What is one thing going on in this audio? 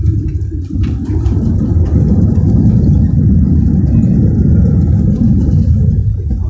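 An airliner's engines rise to a loud, rushing roar as the plane brakes.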